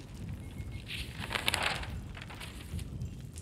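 Paper rustles as pages are leafed through.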